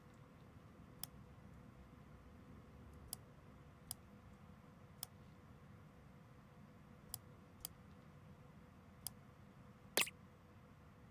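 Short sharp clicks sound now and then.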